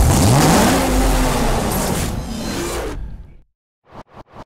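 A sports car engine revs loudly and then fades.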